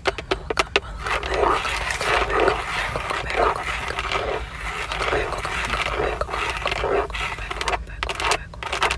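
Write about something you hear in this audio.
Fingernails scratch and rub softly across textured leather.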